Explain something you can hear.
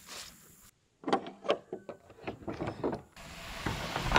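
A metal latch clanks open.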